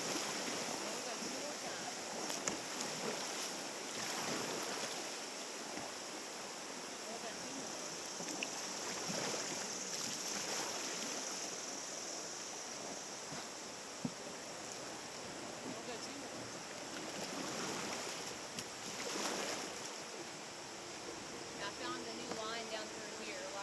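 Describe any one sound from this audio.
A river rushes and burbles steadily close by outdoors.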